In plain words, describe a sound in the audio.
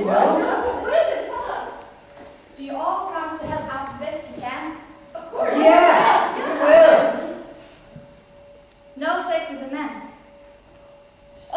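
Young women speak and call out on a stage, heard from the audience in a hall.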